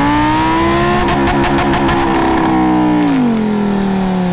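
A car exhaust pops and crackles in quick bursts.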